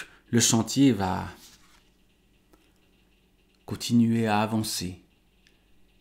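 A man speaks calmly and close to a microphone, in short phrases.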